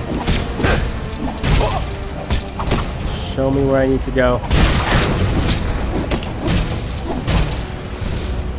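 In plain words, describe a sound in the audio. Blows land with dull thumps.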